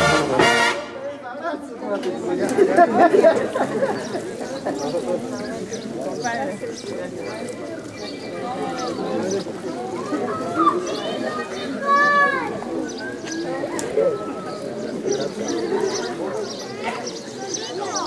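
A crowd of men and women chat nearby outdoors.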